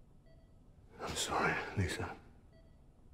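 A man speaks quietly in a low, sorrowful voice.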